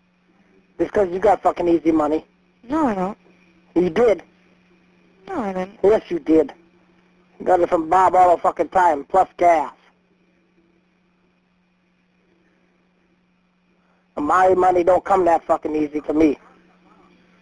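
A woman speaks calmly over a phone line.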